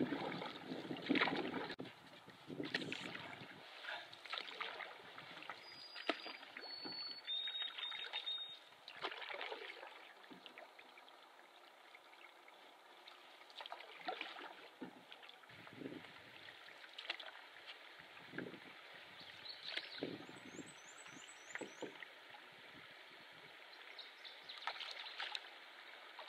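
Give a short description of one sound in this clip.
Water laps softly against a canoe's hull.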